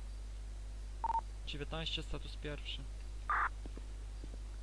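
A radio chirps briefly, twice.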